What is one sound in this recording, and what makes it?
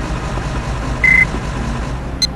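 A fare machine beeps once.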